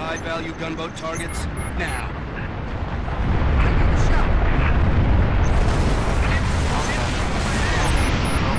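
A spaceship engine roars steadily, growing louder partway through.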